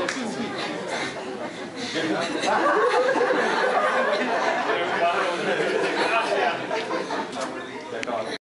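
A group of young men and women cheer and chatter loudly nearby.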